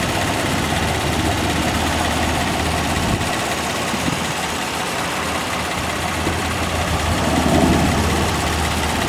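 A car engine idles with a steady low hum close by.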